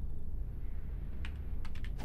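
A person types on a computer keyboard.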